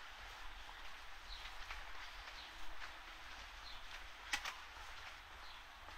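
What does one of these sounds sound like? Footsteps of a man walking by tap on pavement outdoors.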